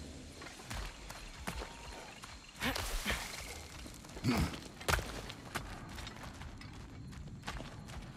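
Heavy footsteps thud slowly on soft ground.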